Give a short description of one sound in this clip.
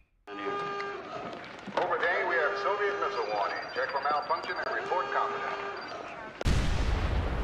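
Electronic consoles beep and chirp in rapid patterns.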